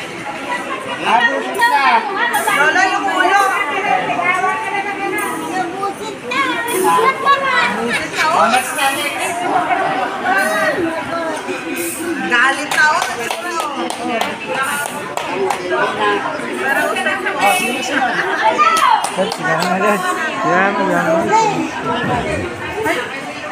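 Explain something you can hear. Several adults talk and chatter with animation close by.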